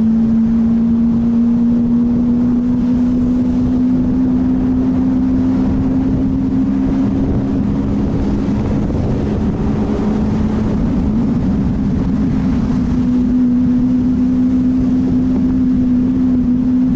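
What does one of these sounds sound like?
Wind rumbles past the car.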